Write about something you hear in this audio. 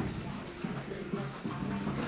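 Boxing gloves thud against punch pads.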